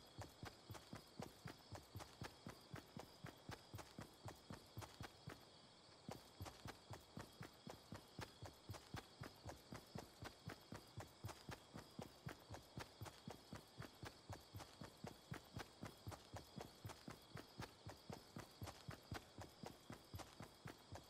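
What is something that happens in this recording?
Quick footsteps thud steadily on grass.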